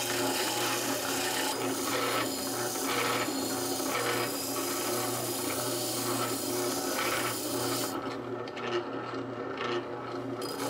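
A spindle sander's motor hums.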